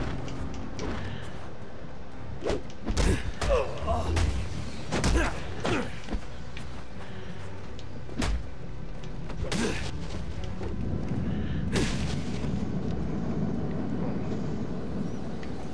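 Bats flutter in a rushing swarm.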